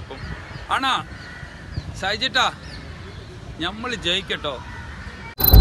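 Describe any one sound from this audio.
A man speaks cheerfully into a microphone, close by, outdoors.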